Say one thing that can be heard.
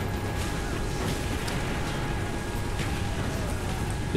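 Rapid gunfire crackles in bursts nearby.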